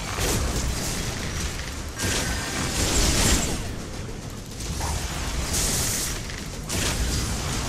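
Magic spells burst and crackle in a game battle.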